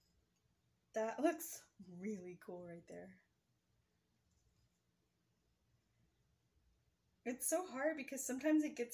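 A woman talks calmly close by.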